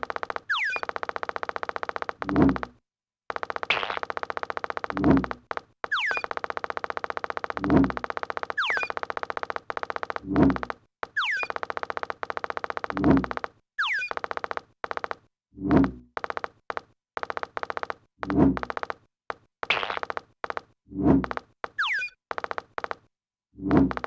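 Electronic game tones whistle downward and buzz in a quick repeating pattern.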